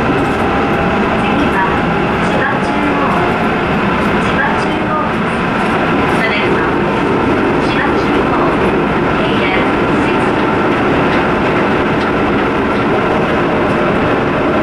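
A train rumbles steadily along its tracks, heard from inside a carriage.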